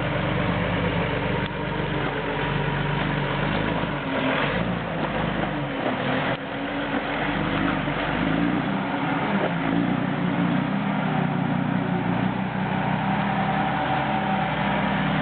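A diesel truck engine rumbles and labours close by, rising and falling in pitch.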